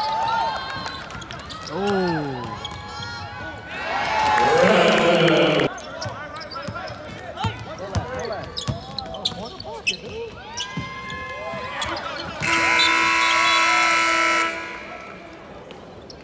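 Sneakers squeak sharply on a hard court in a large echoing arena.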